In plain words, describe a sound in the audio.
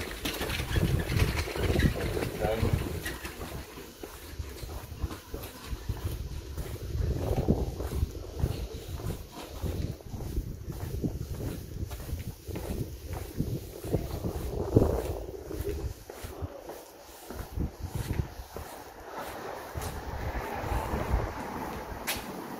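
Footsteps tap on paving stones close by.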